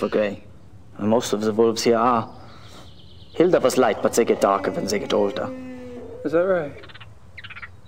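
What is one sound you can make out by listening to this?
A man answers in a calm, friendly voice.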